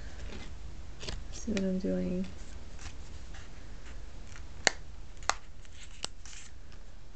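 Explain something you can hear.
Stiff card crackles and taps softly as hands handle it.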